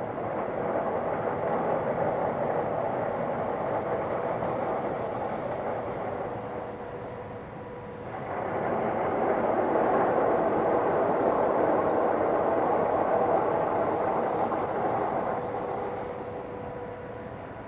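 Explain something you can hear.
A train rolls steadily along the rails with a loud, rushing rumble.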